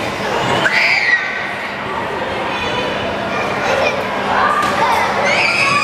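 Children scream with excitement in a large echoing hall.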